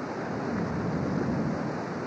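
Dolphins splash as they surface.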